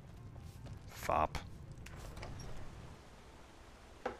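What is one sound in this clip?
A wooden door opens.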